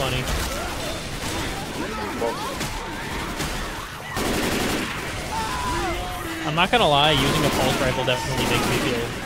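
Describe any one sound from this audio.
Zombies snarl and groan.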